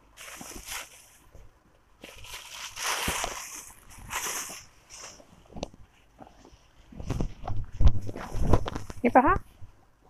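Silk fabric rustles as it is unfolded and lifted.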